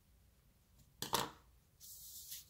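A card taps down onto a table.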